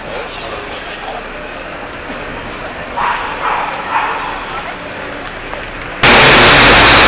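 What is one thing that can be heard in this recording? Street sweeper trucks rumble past outdoors.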